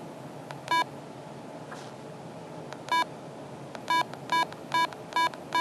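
A handheld radio beeps sharply as its keys are pressed.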